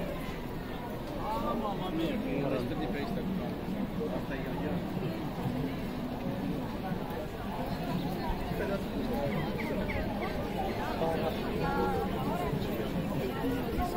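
A crowd of people chatters outdoors, with many voices overlapping.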